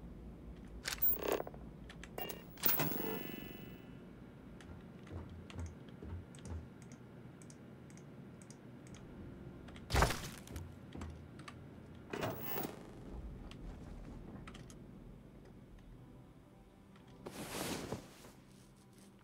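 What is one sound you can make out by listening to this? Short electronic menu clicks and chimes sound now and then.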